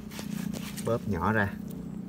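Loose soil rustles as a hand scoops it up.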